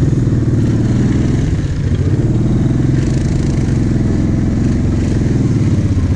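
A quad bike engine drones loudly up close, steady and throbbing.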